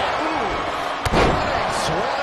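A heavy body slams onto the ring mat with a loud thud.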